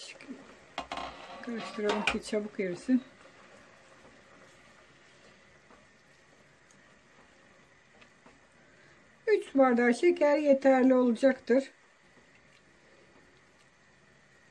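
A spatula stirs softly in a pot.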